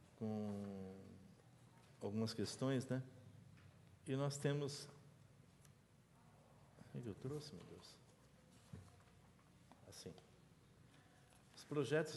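A man speaks into a microphone in short, halting phrases.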